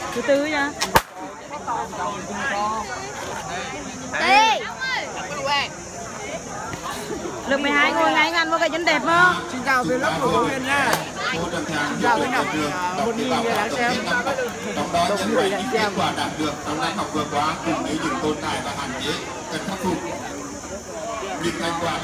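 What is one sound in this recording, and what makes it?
A crowd of young people chatter and call out around the listener.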